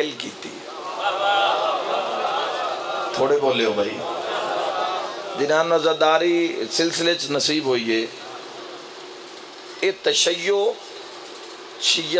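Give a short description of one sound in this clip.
A man speaks passionately into a microphone through loudspeakers.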